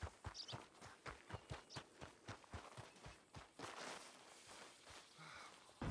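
Footsteps crunch quickly on a dirt road.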